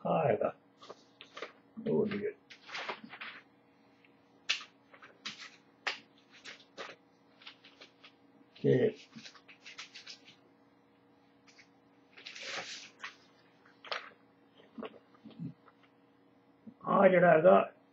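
Paper rustles and crackles as it is handled.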